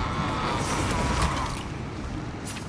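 Blows and blasts clash in a fast fight.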